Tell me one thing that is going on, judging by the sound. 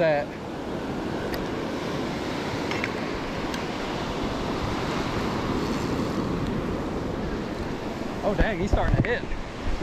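Wind blows across the open beach.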